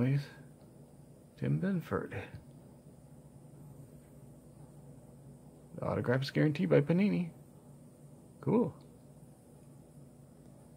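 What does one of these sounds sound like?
A trading card rustles softly between fingers.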